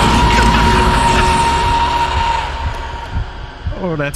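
A creature shrieks loudly and harshly.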